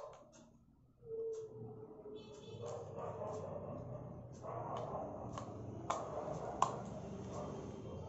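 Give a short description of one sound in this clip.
Small plastic clicks sound as a mouse is handled and opened.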